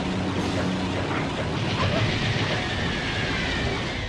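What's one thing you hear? A dragon roars in a video game.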